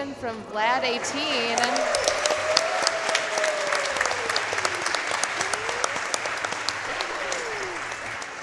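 A crowd cheers and applauds in a large room.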